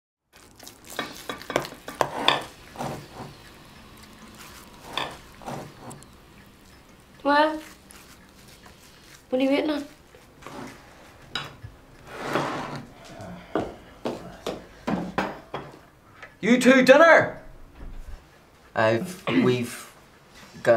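Dishes clink and clatter in a sink.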